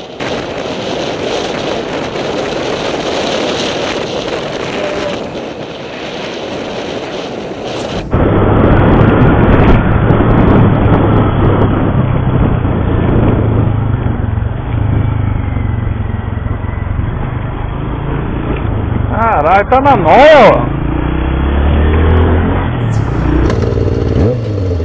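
A motorcycle engine runs and roars as the bike rides along.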